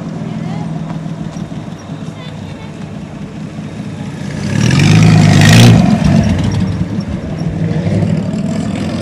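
A car's engine rumbles loudly as it drives close past.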